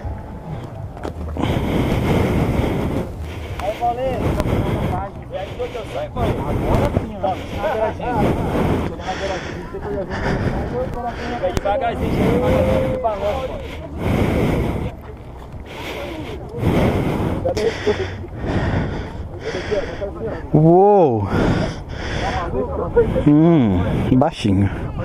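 Wind buffets the microphone in strong gusts outdoors.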